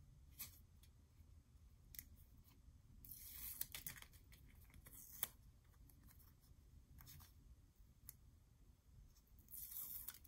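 Sticky tape peels off a roll.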